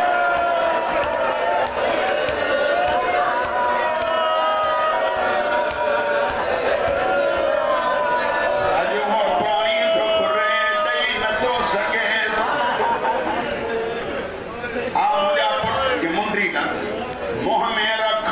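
A middle-aged man chants loudly into a microphone in a mournful sung recitation.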